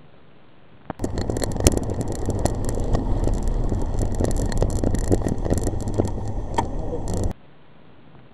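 Wind roars loudly past a moving bicycle.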